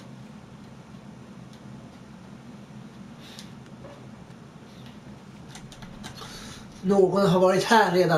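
A wooden drawer slides open and shut.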